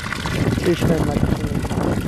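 Water pours from a hose and splashes onto the ground.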